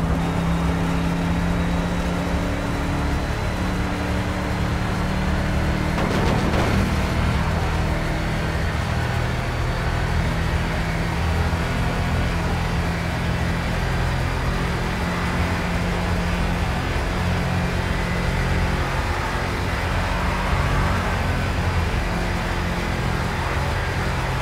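A car engine drones steadily at speed, shifting pitch now and then.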